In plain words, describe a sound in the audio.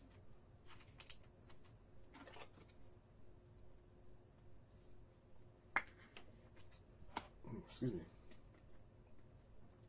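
Trading cards slide and click against each other.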